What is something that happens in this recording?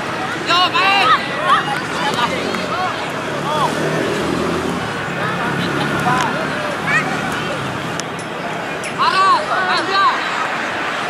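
Children shout across an open field outdoors.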